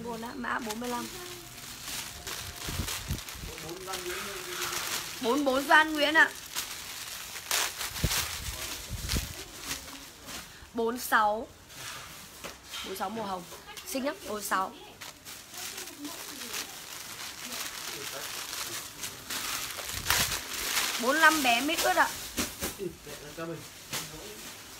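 Plastic bags and fabric rustle as clothes are handled.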